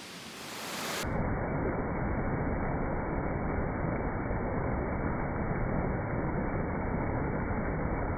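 A shallow stream rushes in small cascades over rocks and logs.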